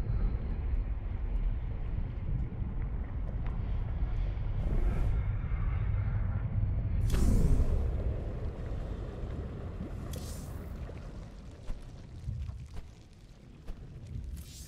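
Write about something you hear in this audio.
A low, eerie drone rumbles steadily.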